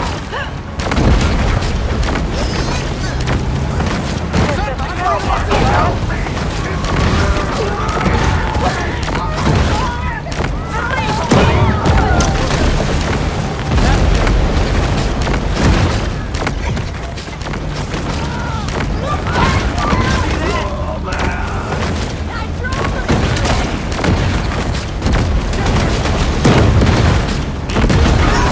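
Electric blasts crackle and burst again and again.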